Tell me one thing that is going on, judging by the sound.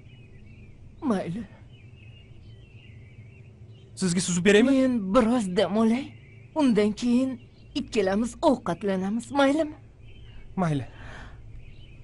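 A middle-aged woman speaks gently and warmly.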